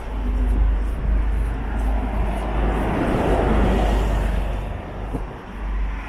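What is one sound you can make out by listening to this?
A bus drives past close by, its rumble swelling and then fading.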